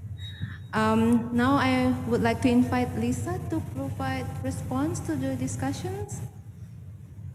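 A woman speaks through a microphone in a calm voice.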